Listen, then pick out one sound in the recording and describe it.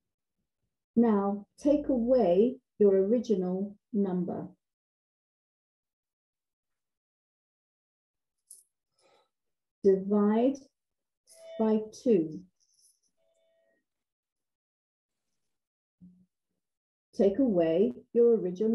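A woman speaks calmly through an online call, with pauses.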